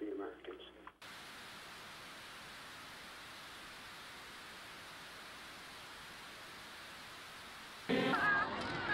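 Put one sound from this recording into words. Television static hisses steadily.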